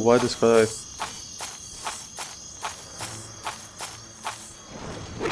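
Heavy footsteps thud at a steady pace on soft ground.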